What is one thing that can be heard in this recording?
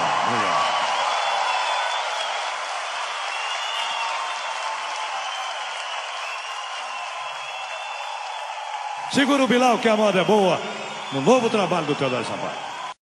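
A large audience claps and cheers in a big hall.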